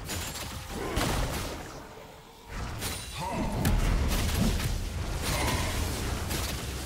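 Fantasy game fight effects whoosh, clash and explode.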